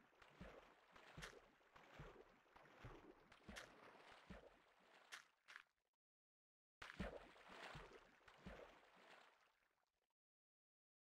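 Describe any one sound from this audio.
Water splashes and flows.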